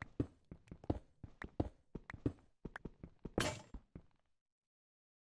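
Stone blocks crack and crumble in quick, repeated knocks as they are broken.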